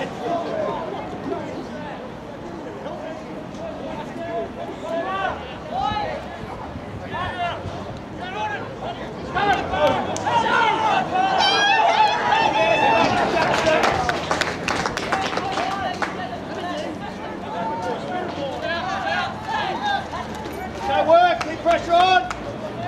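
Young men shout and call out to each other across an open field.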